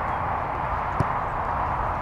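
A soccer ball is kicked with a thud.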